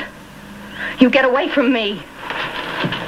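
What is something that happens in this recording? A woman speaks in a startled, urgent voice close by.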